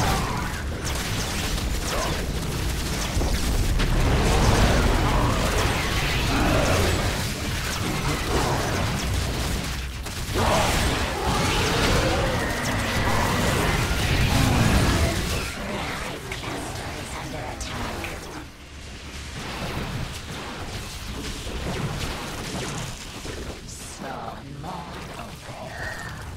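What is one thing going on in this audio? Laser shots zap and crackle rapidly.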